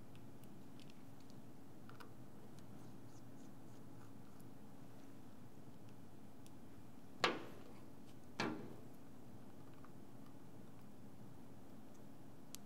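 Small parts click and tap faintly against a hard surface.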